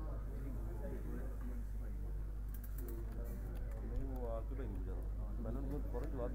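Several men talk casually among themselves nearby.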